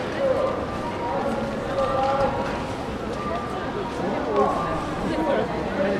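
Many footsteps shuffle on pavement.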